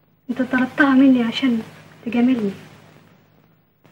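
A young woman speaks softly nearby.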